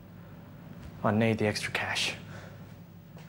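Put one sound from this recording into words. Another young man answers in a low, firm voice, close by.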